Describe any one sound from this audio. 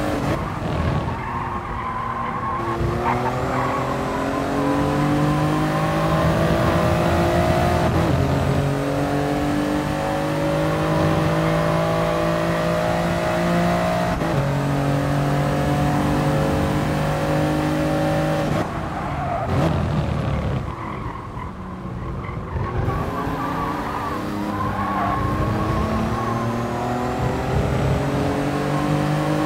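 A racing car engine revs high and climbs through the gears.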